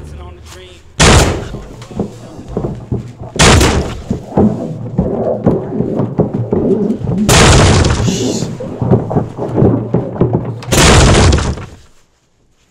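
A man pounds hard on a door.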